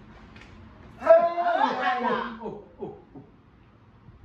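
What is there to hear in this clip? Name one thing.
A woman exclaims loudly and happily nearby.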